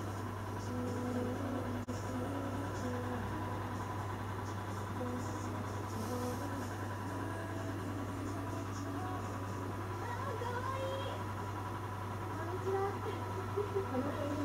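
A dog breathes slowly and softly in its sleep.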